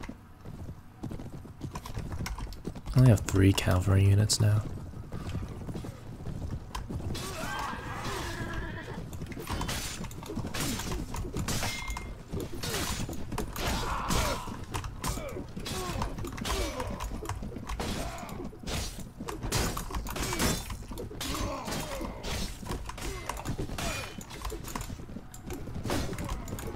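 Horses gallop with thudding hooves.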